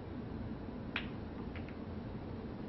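Snooker balls click together on the table.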